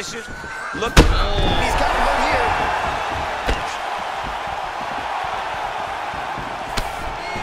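A large crowd roars and cheers in a big arena.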